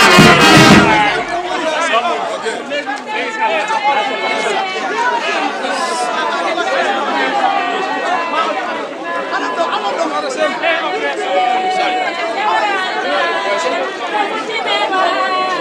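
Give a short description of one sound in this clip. A crowd of men and women chatter and talk all around outdoors.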